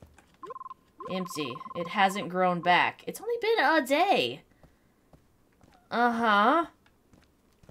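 A young woman speaks expressively into a nearby microphone.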